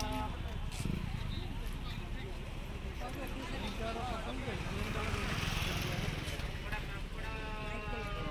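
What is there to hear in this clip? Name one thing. A crowd of men and women chatter all around.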